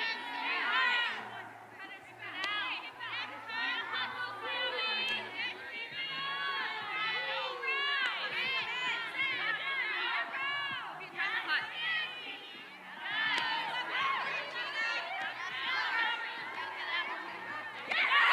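Young women shout and call out to each other outdoors.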